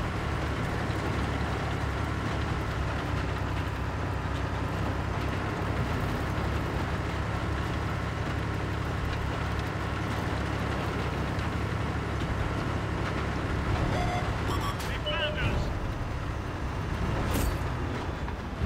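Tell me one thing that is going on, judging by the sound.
Tank tracks clank and squeak over rough ground.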